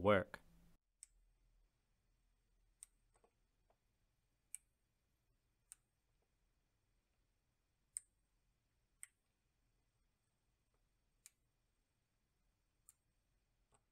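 Small electronic parts click softly as fingers handle them.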